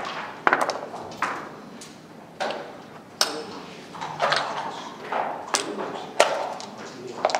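Checkers click as they are moved on a wooden board.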